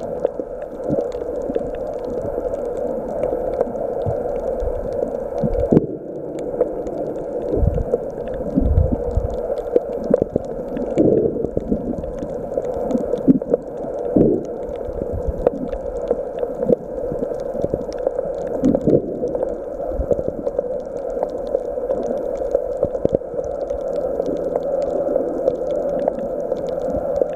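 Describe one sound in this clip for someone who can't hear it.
A steady, muffled underwater rumble surrounds the listener.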